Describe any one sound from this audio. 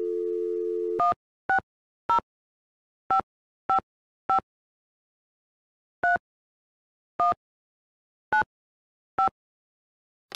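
Touch-tone keypad beeps sound as buttons are pressed.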